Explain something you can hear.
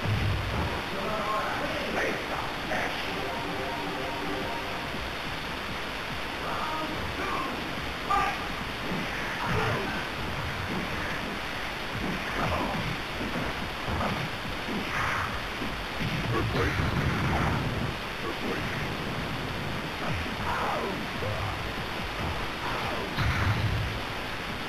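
Fast electronic game music plays throughout.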